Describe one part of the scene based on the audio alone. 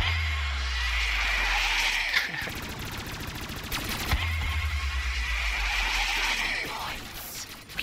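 A rapid-fire gun fires in long bursts.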